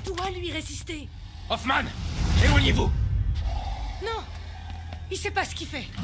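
A young woman shouts urgently.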